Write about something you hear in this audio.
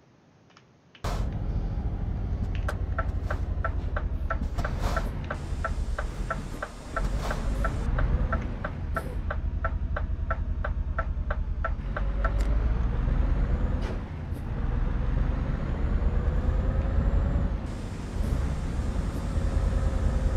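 A diesel truck engine drones, heard from inside the cab.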